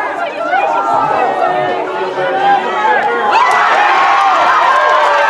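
A crowd cheers and shouts, swelling louder toward the end.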